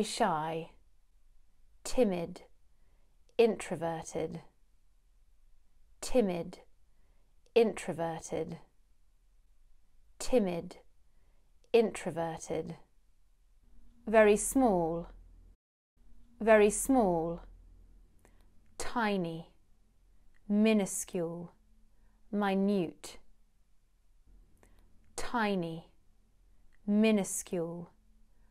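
A young woman speaks clearly and slowly into a close microphone.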